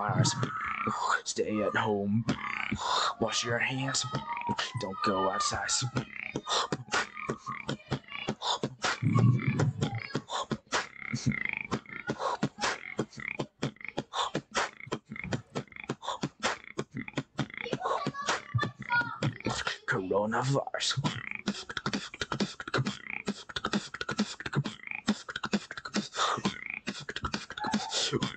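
A young man beatboxes rapidly into a microphone, with sharp clicks, snares and hums.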